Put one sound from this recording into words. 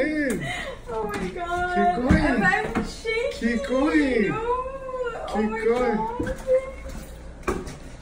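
A woman cries out and sobs with emotion close by.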